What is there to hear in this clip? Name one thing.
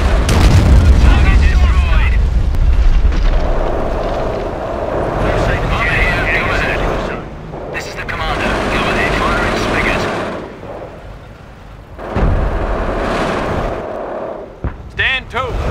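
Tank engines rumble.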